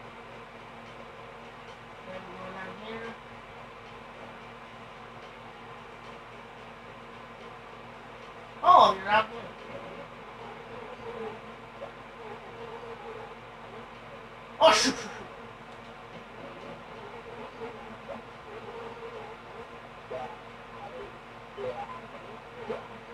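Cheerful video game music plays softly through a television speaker.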